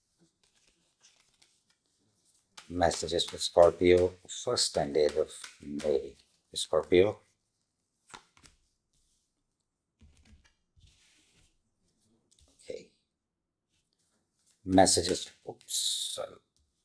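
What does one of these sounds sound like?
Playing cards shuffle and flick softly.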